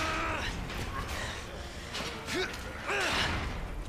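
A metal gate rattles as it is shaken.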